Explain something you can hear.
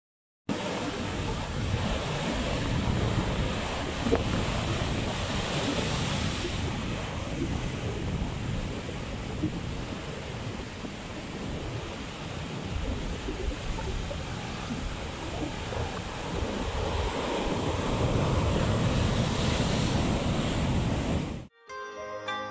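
Foaming surf hisses steadily.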